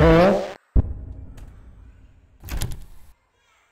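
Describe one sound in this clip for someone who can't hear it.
A door swings open with a thud.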